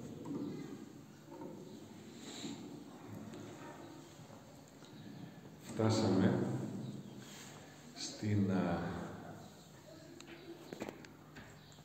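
An elderly man speaks into a microphone, calmly at first and then with rising emphasis, in a room with some echo.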